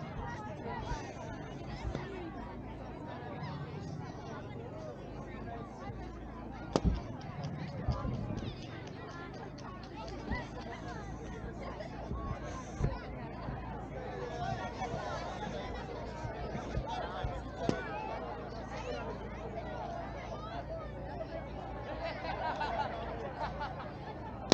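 A crowd of people chatters in the distance.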